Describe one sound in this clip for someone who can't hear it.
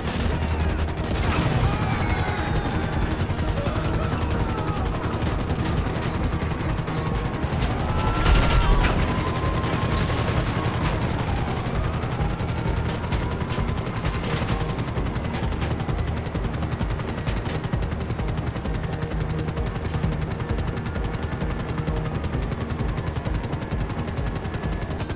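A helicopter's rotor thumps steadily and loudly throughout.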